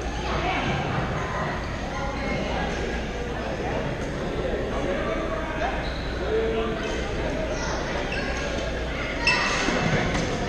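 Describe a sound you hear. Many people chatter throughout a large echoing gym.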